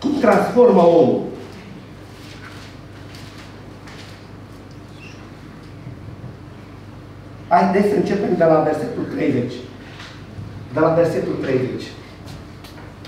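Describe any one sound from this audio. A middle-aged man speaks slowly into a microphone, heard through a loudspeaker in an echoing room.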